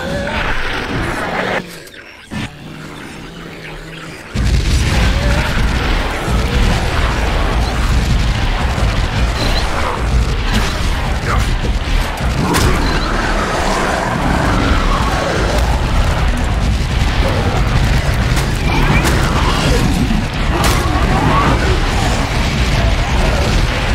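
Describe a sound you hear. A man talks with animation through a close microphone.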